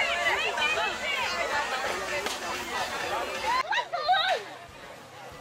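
A crowd of children and adults shouts and cheers outdoors.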